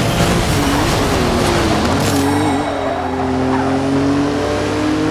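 A car engine roars loudly, its pitch rising and falling as it revs.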